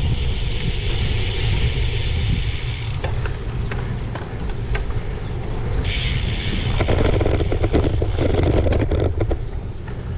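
Wind rumbles steadily across a microphone outdoors.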